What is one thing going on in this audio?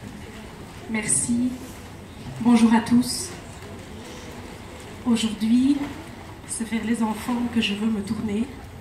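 A woman speaks into a microphone over loudspeakers, in short bursts.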